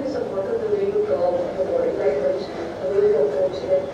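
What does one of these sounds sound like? A middle-aged woman speaks firmly through a small loudspeaker.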